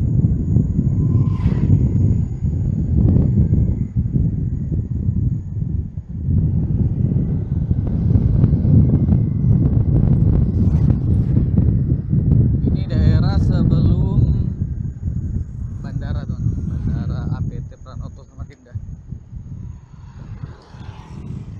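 Another motorcycle passes close by.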